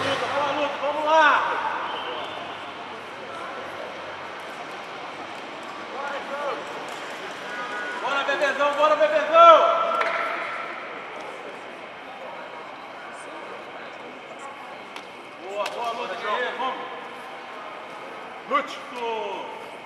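A man gives instructions in a firm, calm voice nearby.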